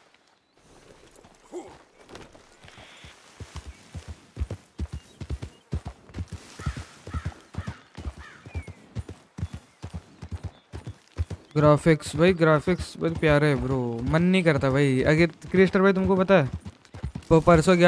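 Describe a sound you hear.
A horse's hooves thud steadily on the ground at a trot.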